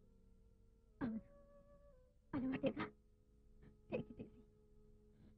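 A young woman speaks softly and sadly nearby.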